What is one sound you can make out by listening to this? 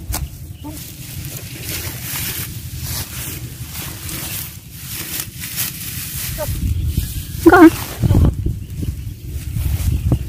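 Leafy branches rustle as a woman pushes through a bush.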